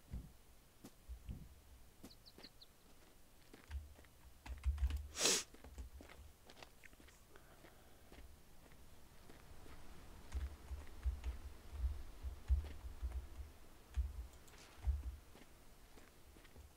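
Footsteps crunch on dry grass and leaves.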